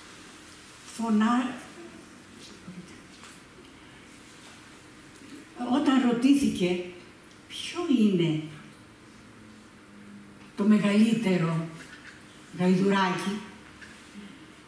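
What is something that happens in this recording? An elderly woman reads out slowly into a microphone, with long pauses.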